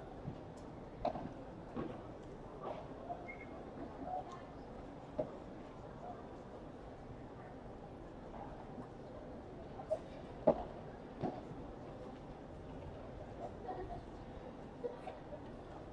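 Padel rackets hit a ball with sharp pops.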